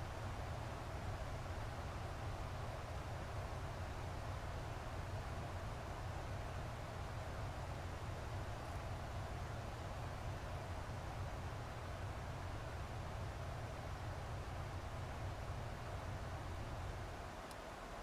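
Jet engines drone with a steady, deep roar.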